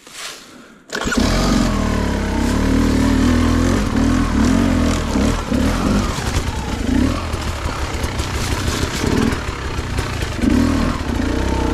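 Tyres crunch over dry leaves.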